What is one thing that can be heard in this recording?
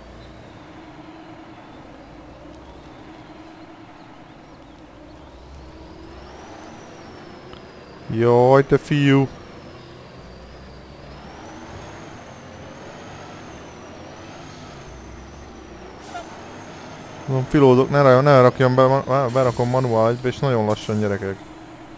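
A heavy truck engine rumbles steadily as it crawls through mud.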